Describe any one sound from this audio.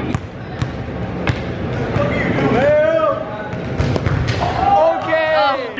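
A ball bounces and thuds on a hard floor in an echoing hall.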